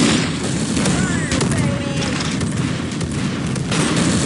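Gunfire from a video game automatic rifle rattles.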